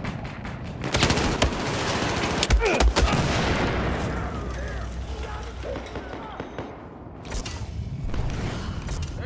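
Gunshots crack sharply, several in quick bursts.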